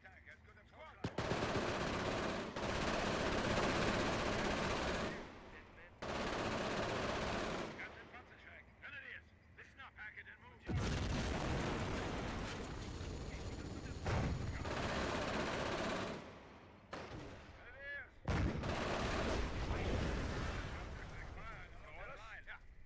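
Machine guns fire in long, rapid bursts.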